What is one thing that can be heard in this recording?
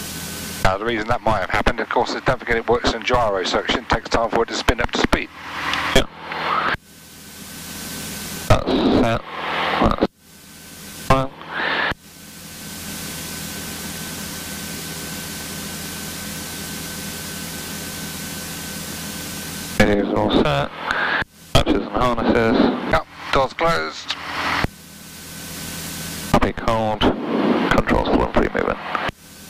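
An aircraft engine drones steadily inside a small cockpit.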